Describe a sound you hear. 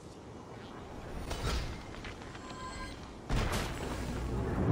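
A bright magical chime rings out and shimmers.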